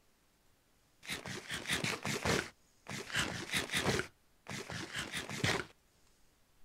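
Blocks crunch and scrape in quick bursts as they are broken and placed.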